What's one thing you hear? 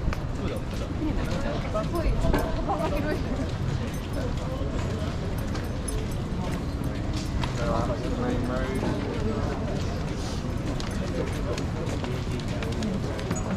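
A crowd of men and women chatter nearby outdoors in a busy street.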